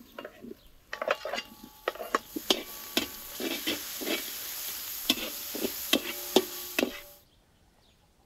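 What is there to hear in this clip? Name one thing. Vegetables sizzle loudly in a hot pan.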